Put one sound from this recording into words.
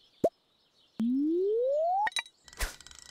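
A rising tone swells as a fishing rod is charged for a cast.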